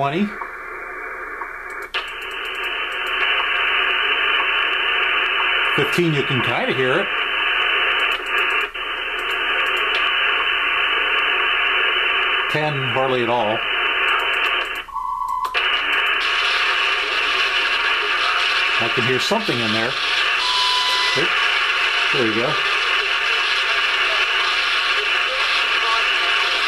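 Shortwave static hisses from a software radio receiver.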